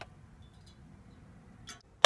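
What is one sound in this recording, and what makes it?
Water pours from a bottle into a metal kettle.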